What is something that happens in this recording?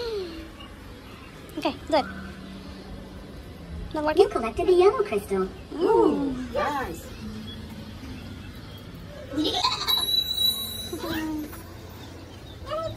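A young boy talks and squeals excitedly close by.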